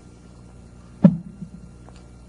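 A cup knocks down onto a lectern.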